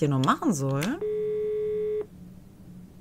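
A phone rings once with a steady electronic tone.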